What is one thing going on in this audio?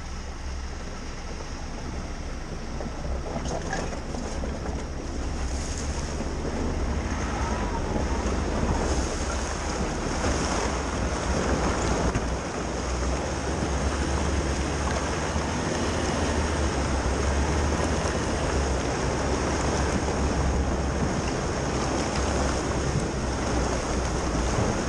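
Tyres splash and crunch over a muddy, rocky track.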